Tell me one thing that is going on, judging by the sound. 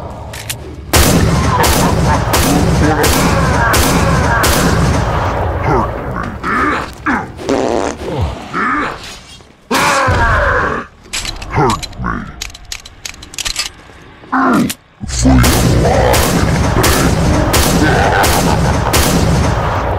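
Pistol shots ring out again and again, sharp and loud.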